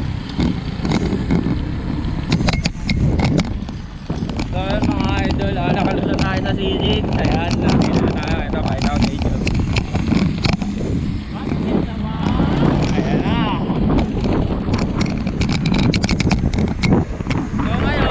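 Wind rushes loudly over a microphone while cycling outdoors.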